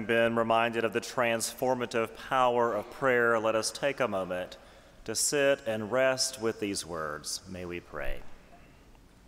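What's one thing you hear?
A man speaks steadily into a microphone in a large echoing hall.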